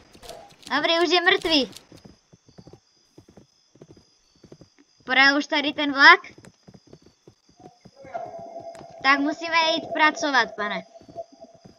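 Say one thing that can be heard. Horse hooves thud at a canter.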